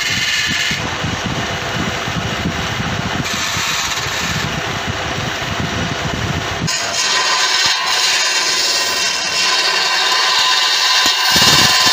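A wood lathe hums as it spins.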